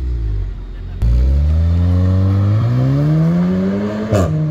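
A car accelerates away with a rising engine roar.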